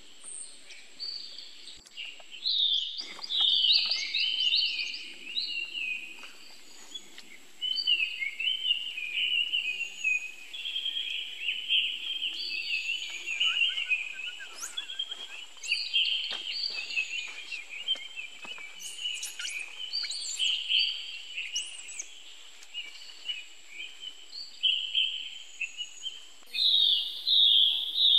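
A baby monkey squeals and whimpers shrilly.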